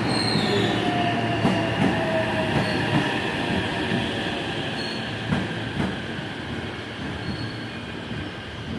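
A train rushes past with a loud rumble that slowly fades.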